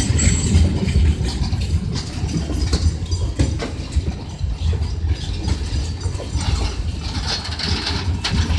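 Metal squeals from the train's wheels.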